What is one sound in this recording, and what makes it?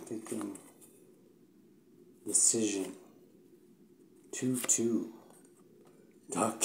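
A young man speaks calmly and close up, in short bursts with pauses.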